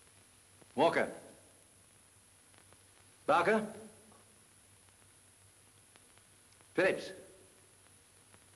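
A man shouts short commands in a room with some echo.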